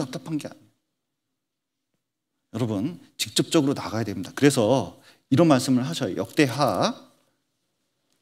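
A middle-aged man speaks with animation into a microphone.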